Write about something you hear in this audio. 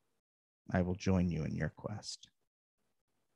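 A man speaks briefly and with animation over an online call.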